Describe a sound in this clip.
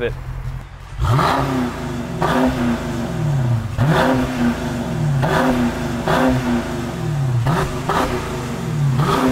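A car engine revs repeatedly through a loud exhaust.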